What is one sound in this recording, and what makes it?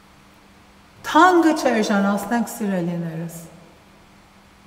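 A middle-aged woman speaks with animation close to a microphone.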